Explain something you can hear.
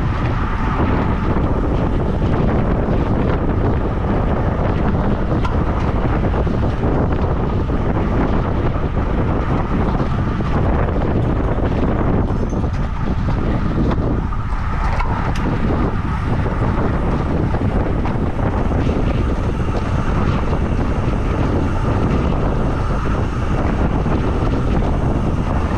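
Wind roars loudly over a moving bicycle.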